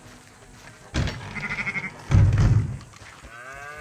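Heavy wooden barn doors creak and bang open.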